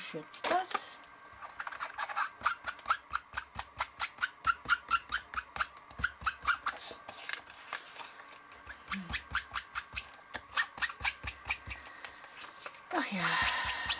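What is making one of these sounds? A sponge dabs rapidly and repeatedly on paper.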